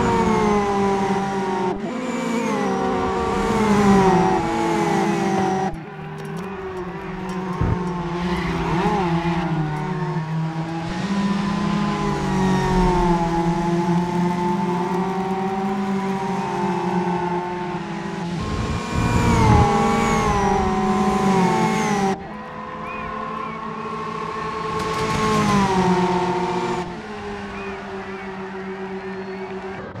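Racing car engines roar and rev as the cars speed past.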